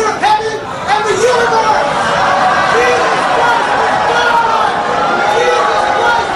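A man speaks forcefully into a microphone.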